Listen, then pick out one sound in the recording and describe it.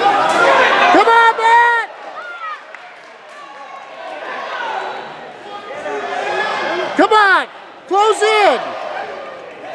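Men in the crowd yell out loud, drawn-out shouts.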